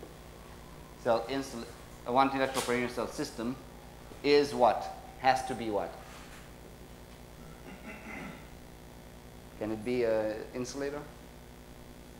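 A man speaks calmly, with pauses.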